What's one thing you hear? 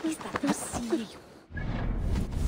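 A horse's hooves thud on a dirt path.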